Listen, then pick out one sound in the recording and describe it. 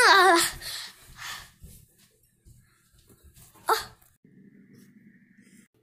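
A young girl shouts close by.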